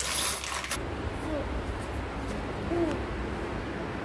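A toddler girl babbles close by.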